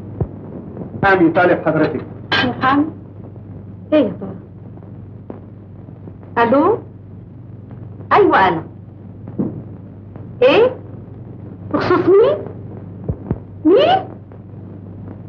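An elderly woman talks loudly into a telephone.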